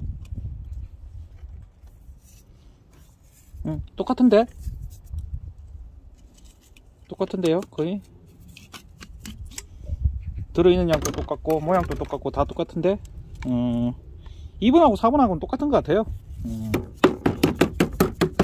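Plastic pipe fittings knock and clatter together as they are handled.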